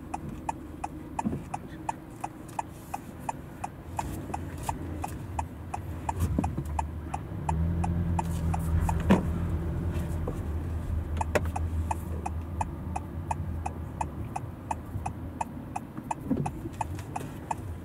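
A car engine hums low as the car drives slowly through an echoing garage.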